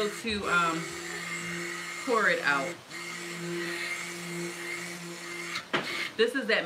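A stick blender whirs steadily, its motor pitch sweeping up and down at times.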